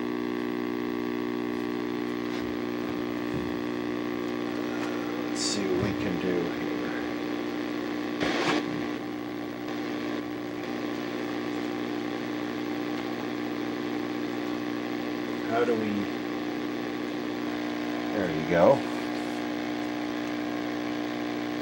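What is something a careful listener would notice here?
An old television gives off a steady electronic hum and buzz.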